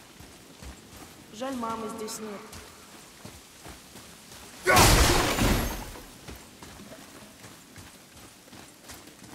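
Heavy footsteps crunch on gravel.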